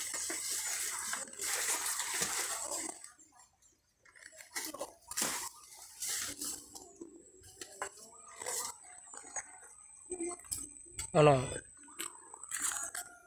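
Leaves rustle and twigs snap as a man pushes through dense plants.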